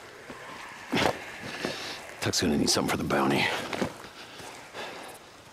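A man speaks gruffly.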